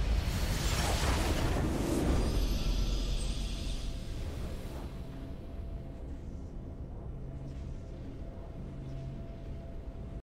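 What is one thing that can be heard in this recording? A triumphant game fanfare swells and then fades.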